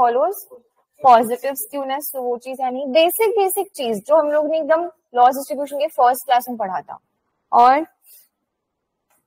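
A young woman explains calmly through a microphone.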